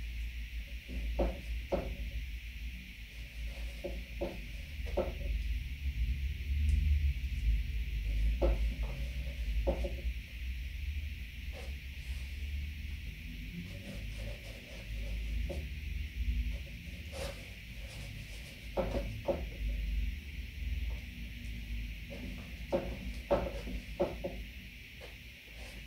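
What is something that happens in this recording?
A brush dabs and scrapes softly on canvas.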